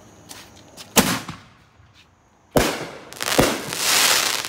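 A firework bursts with a loud bang.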